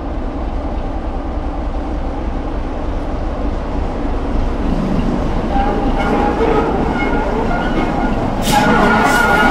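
A diesel locomotive engine rumbles and grows louder as it approaches.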